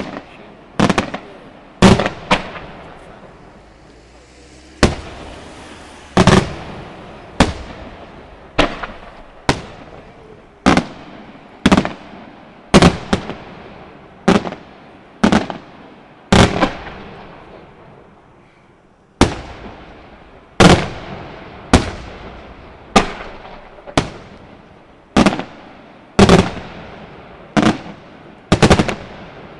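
Fireworks burst with loud booming bangs, one after another.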